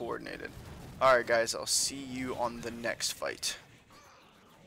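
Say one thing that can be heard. Magic spells burst and whoosh.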